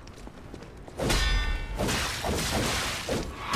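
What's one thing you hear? A blade slashes through the air with a heavy whoosh.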